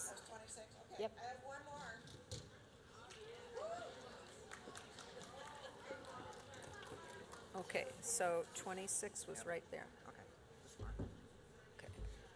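An older woman speaks calmly into a microphone, heard through loudspeakers.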